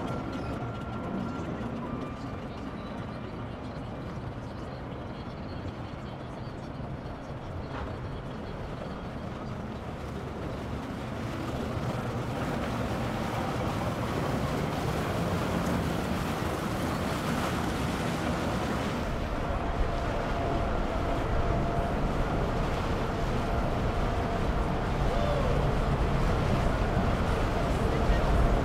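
Water splashes and churns behind a moving boat.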